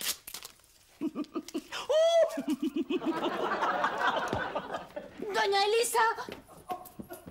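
A woman shouts excitedly nearby.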